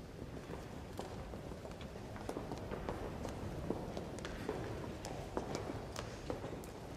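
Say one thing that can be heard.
Footsteps tap and shuffle on a hard floor in a large echoing hall.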